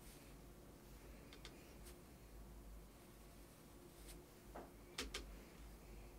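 A paintbrush taps and swirls in a paint palette.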